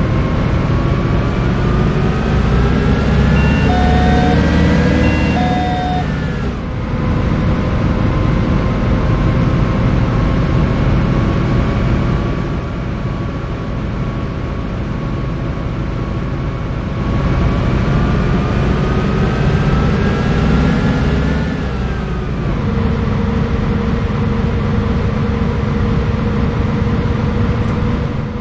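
A bus engine hums and whines, rising in pitch as it speeds up and dropping as gears change.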